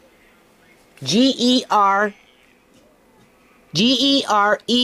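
A toy telephone plays short, high, sing-song phrases through a small tinny speaker.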